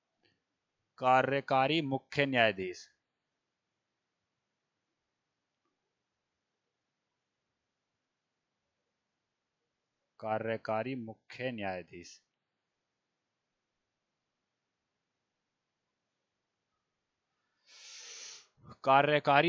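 A man speaks calmly in short bursts through a headset microphone.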